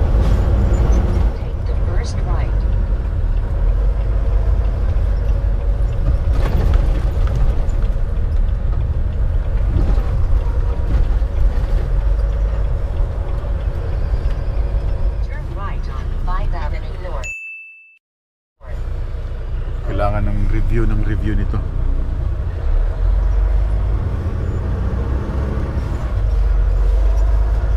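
A heavy truck engine rumbles steadily, heard from inside the cab.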